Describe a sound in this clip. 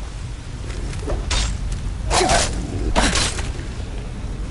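Metal blades swish and clash in a fight.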